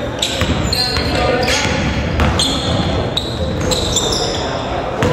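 Sneakers squeak sharply on a gym floor.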